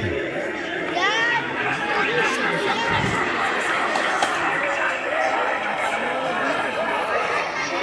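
Children shout and squeal with excitement.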